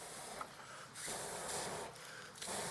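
A man blows on a small fire.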